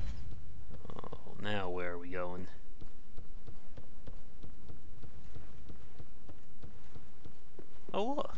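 Armoured footsteps thud across a wooden floor.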